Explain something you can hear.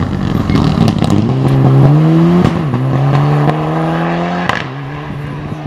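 A rally car engine roars loudly at high revs as the car speeds past and fades away.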